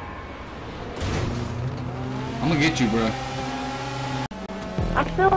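A racing car engine roars steadily.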